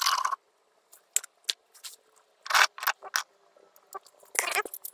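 Pieces of tile clink and scrape together in hands.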